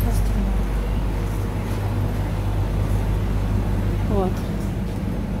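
Refrigerated coolers hum steadily.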